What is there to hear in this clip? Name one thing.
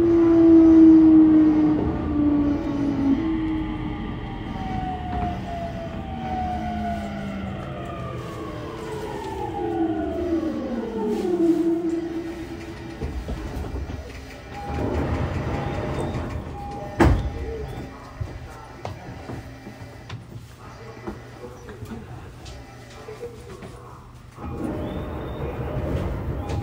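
A train car rumbles along the tracks.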